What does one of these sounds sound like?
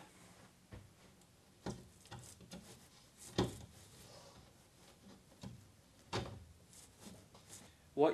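Plastic clips tap and knock against a wall.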